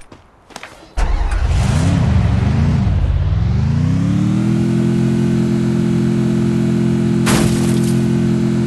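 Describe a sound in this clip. A vehicle engine starts up, revs and then drones steadily.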